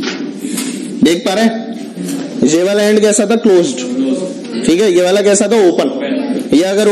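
A man speaks calmly and clearly to a nearby microphone, explaining.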